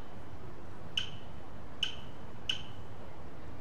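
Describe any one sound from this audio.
Short electronic menu blips sound several times.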